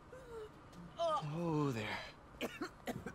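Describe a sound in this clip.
A young man exclaims in surprise close by.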